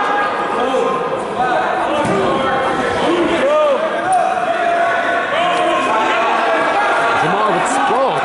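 Wrestlers' feet squeak and thump on a mat.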